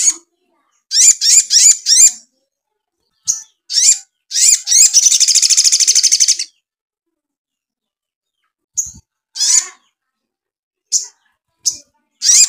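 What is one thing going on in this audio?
A small songbird sings loud, high, sharp chirps and a rapid trill close by.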